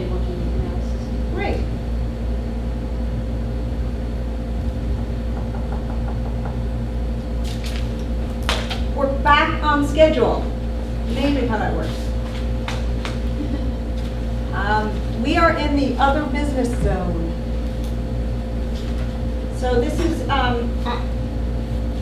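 An air conditioner hums steadily.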